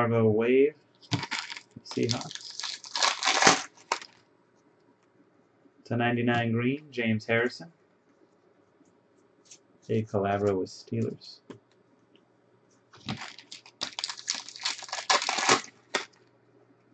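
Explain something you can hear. Foil card wrappers crinkle and tear.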